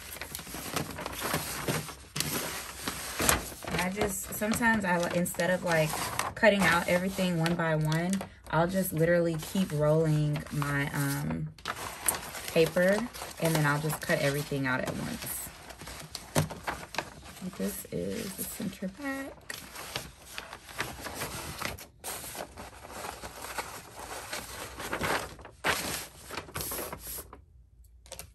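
Stiff paper rustles and crinkles as hands handle it.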